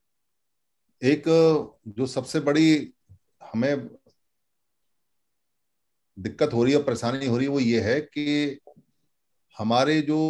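A middle-aged man speaks calmly in short phrases, heard through an online call.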